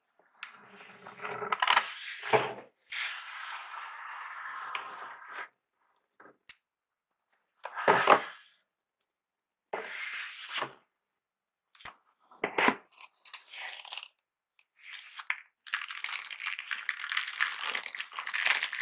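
Cardboard and paper rustle and scrape as a box is handled.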